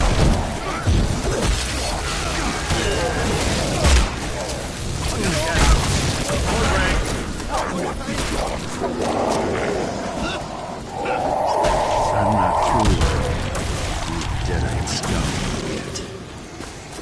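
Heavy blows thud in a close fight.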